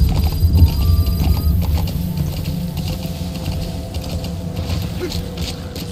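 Horse hooves thud on a dirt path.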